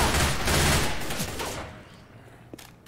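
A melee weapon strikes a zombie with a loud wet hit.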